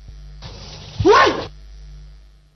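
A woman cries out sharply.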